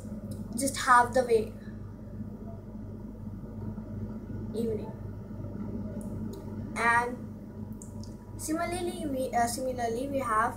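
A young girl speaks and sings close to a microphone, with pauses.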